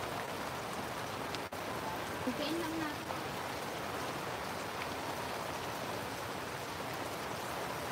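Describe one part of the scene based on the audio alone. A small wood fire crackles.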